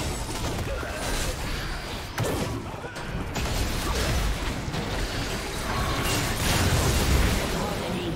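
Game spell effects whoosh and clash in a busy battle.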